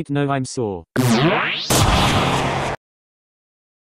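A magic blast whooshes and crackles.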